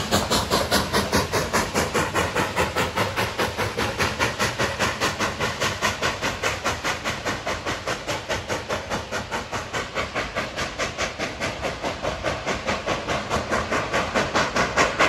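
A steam locomotive chuffs rapidly and rhythmically as it pulls away.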